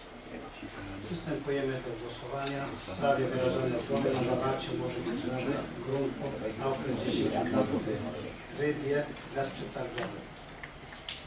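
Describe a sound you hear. A second man speaks calmly through a microphone.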